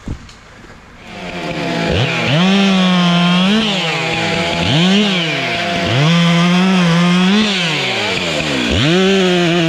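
A chainsaw engine roars loudly, revving up and down.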